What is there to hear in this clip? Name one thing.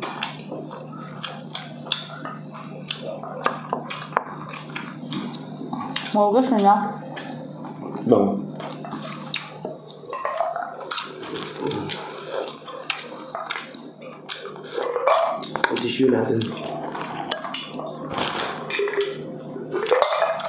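A young woman eats noisily close to a microphone, with smacking and slurping.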